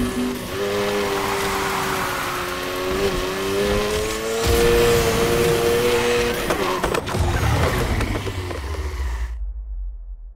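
A car engine roars at high revs, rising and falling as it shifts gears, then fades away.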